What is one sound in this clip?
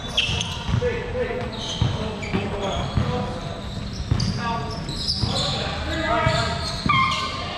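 Basketballs thump on a wooden floor in a large echoing hall.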